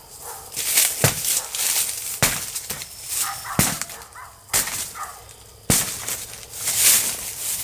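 Metal scrapes against soil and grass outdoors.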